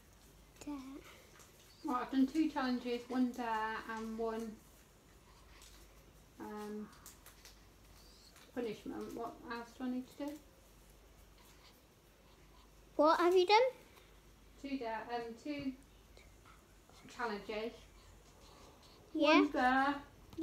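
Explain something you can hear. A young girl talks softly and playfully close by, in short bursts.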